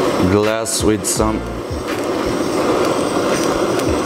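A gas torch hisses steadily up close.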